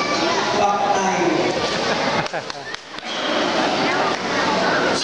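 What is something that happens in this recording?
A seated crowd chatters in the background.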